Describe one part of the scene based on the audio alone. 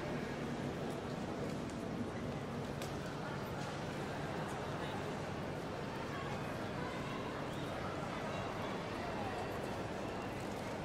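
A crowd of people murmurs in a large, echoing hall.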